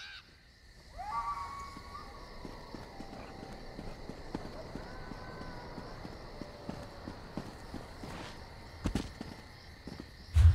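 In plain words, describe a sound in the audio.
Footsteps tread steadily on stone.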